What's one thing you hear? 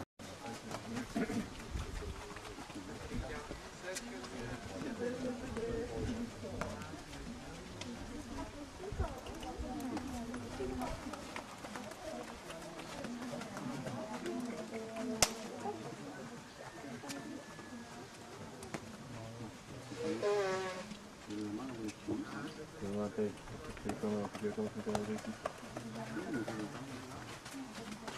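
A horse's hooves thud softly on soft ground.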